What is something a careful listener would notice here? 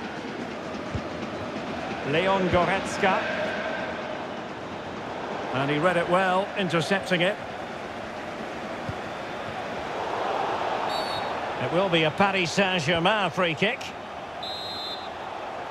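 A large crowd murmurs and roars steadily in a big open stadium.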